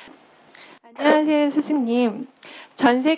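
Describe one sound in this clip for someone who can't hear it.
A young woman speaks loudly through a microphone.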